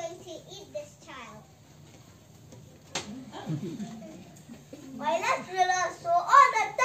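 A group of young children sing together nearby.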